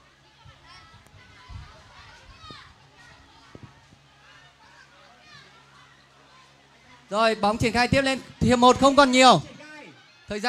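Children shout and call out in a pool.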